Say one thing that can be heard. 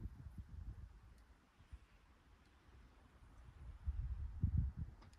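Wind gusts outdoors across open country.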